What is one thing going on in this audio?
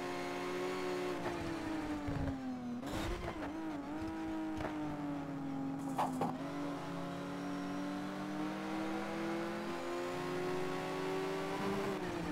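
A racing car engine roars steadily, its pitch dipping and rising through gear changes.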